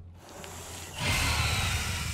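A creature hisses loudly.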